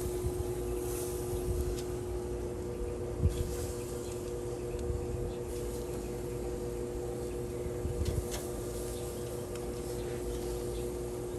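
Food sizzles steadily on a hot grill.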